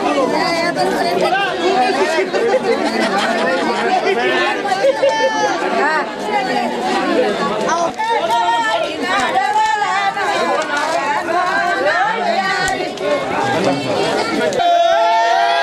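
A crowd of men and women talks in a loud, overlapping babble.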